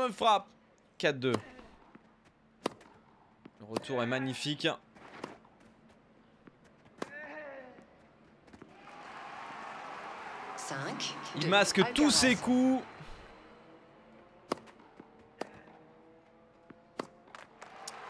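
A tennis ball is struck with sharp pops.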